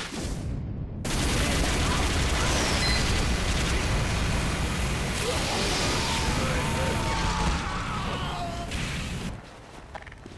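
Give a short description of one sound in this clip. Guns fire rapidly in a noisy battle.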